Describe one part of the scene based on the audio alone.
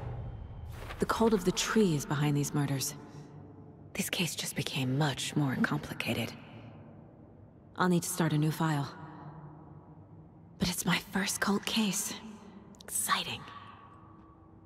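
A young woman speaks calmly and thoughtfully, close by.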